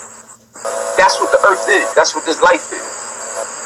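A man speaks with animation over a phone-quality online call.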